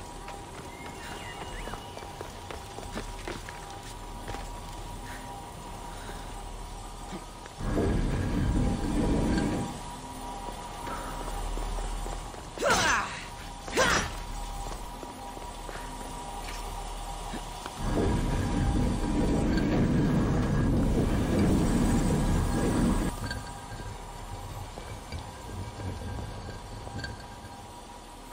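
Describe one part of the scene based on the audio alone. A light beam hums steadily.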